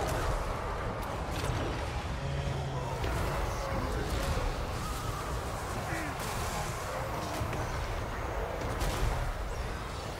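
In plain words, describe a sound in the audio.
Magic blasts burst with loud whooshes.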